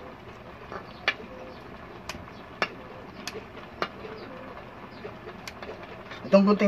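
A metal spoon clinks against a metal pot.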